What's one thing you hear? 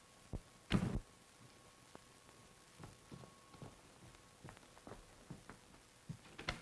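A woman's high-heeled footsteps click across a hard floor.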